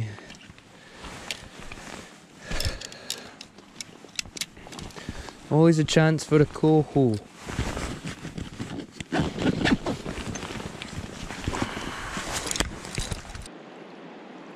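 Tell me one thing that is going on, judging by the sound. Clothing rustles and gear clatters close by.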